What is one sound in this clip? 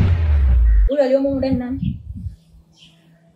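A young woman speaks in a low, troubled voice.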